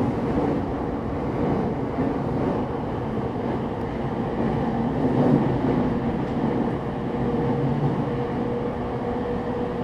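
An electric train hums steadily while standing still.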